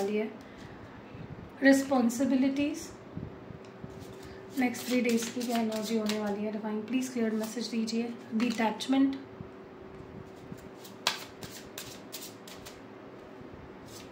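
Playing cards riffle and flick as they are shuffled.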